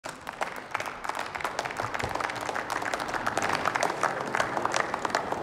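A crowd applauds in a large hall.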